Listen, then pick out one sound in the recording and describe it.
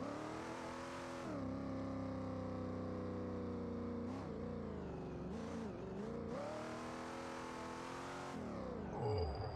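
A powerful car engine roars and revs up and down.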